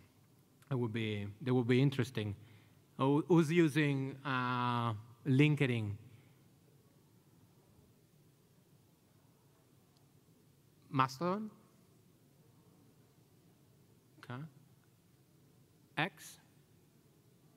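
A man speaks calmly into a microphone, with long pauses.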